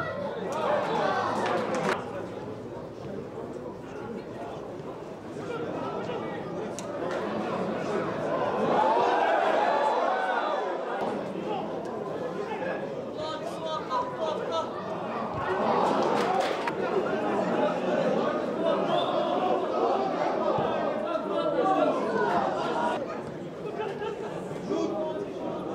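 A crowd murmurs in the stands.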